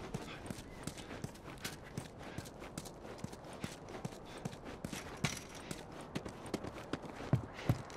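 Footsteps crunch steadily on a gritty concrete floor.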